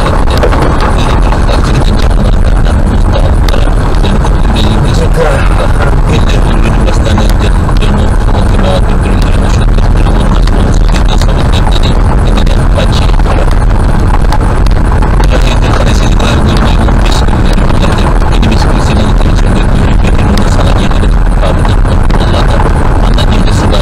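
A car rumbles steadily along a rough gravel road.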